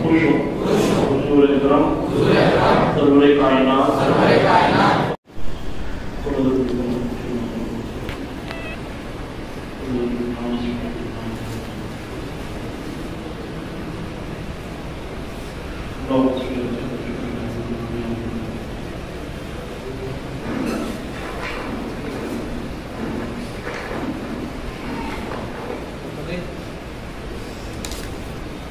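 A man chants in a deep voice through a microphone.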